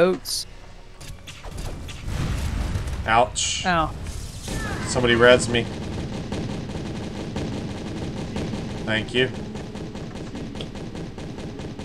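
Cartoon fight effects clang and burst rapidly.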